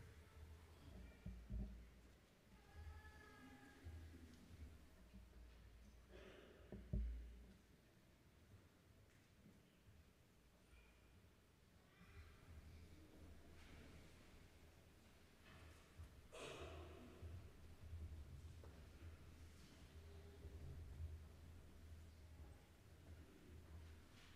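Many footsteps shuffle slowly across a large echoing hall.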